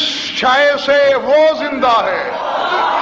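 A man chants loudly in a strong voice through a microphone.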